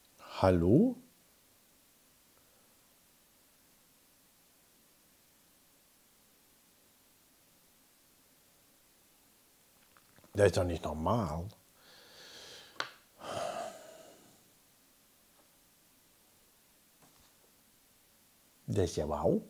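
A man speaks in short, loud bursts close to a microphone.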